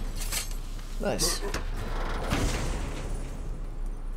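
A heavy wooden chest creaks open.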